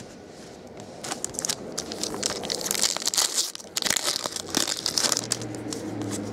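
Foil wrappers crinkle and rustle as they are torn open and handled.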